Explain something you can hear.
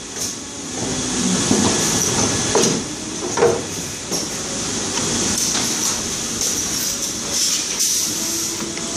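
Pneumatic parts hiss and clunk as the machine cycles.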